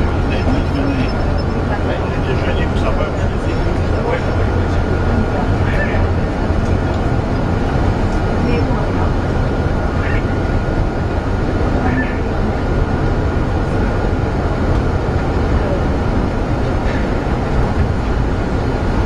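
Traffic drones and echoes through an enclosed tunnel.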